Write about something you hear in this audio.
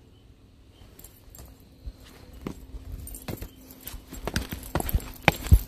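Footsteps scuff on a concrete path close by.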